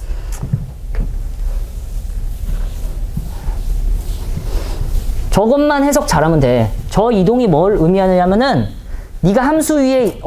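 A board eraser rubs across a chalkboard.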